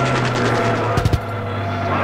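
A heavy explosion booms.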